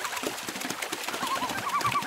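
Water splashes as a bird thrashes at the surface.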